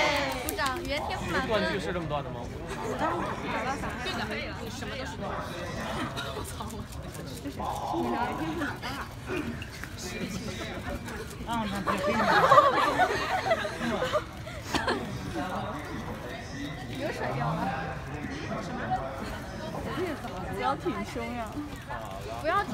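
Several young women chatter and laugh excitedly nearby.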